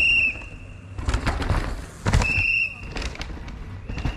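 A mountain bike rolls fast over dirt, its tyres crunching and rattling.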